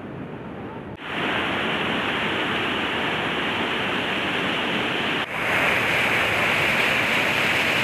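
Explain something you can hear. Water roars and churns as it pours over a spillway.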